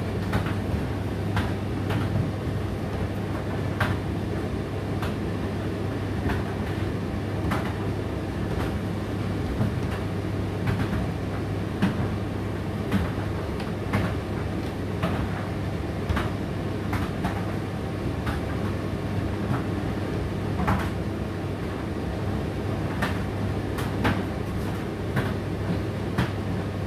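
Clothes thump and tap inside a tumble dryer's turning drum.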